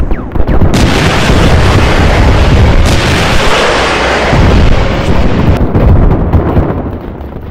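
A large explosion booms and roars.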